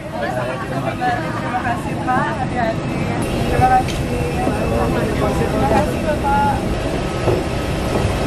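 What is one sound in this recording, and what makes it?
Young women speak softly and warmly in greeting, close by.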